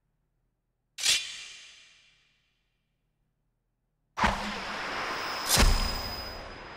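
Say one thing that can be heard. A sudden sharp crash rings out, then fades.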